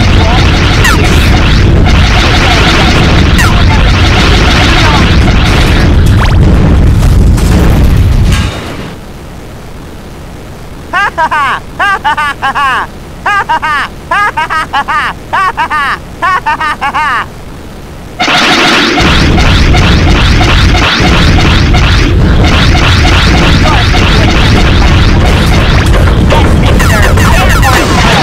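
Game explosions burst.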